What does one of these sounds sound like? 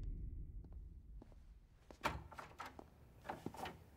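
A heavy door opens.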